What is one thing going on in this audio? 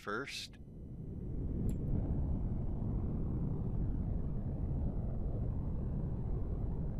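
A spaceship's engines rumble low and steadily, swelling in the first seconds.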